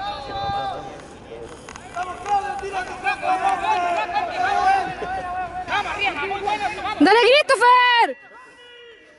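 Men and women cheer and shout encouragement outdoors.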